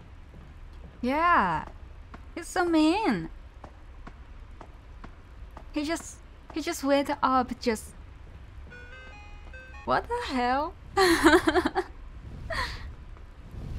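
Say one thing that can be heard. A young woman speaks with animation into a microphone, in short bursts.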